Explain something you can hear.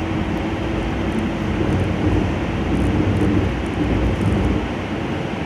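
A train rumbles steadily along the tracks through a tunnel.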